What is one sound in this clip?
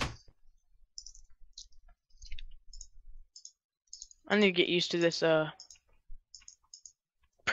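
Soft clicks sound as items are moved around in a game inventory.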